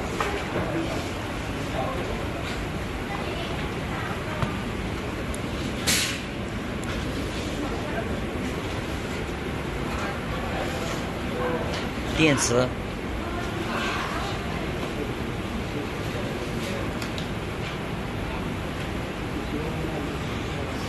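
Metal bolts clink against a metal panel as they are fitted.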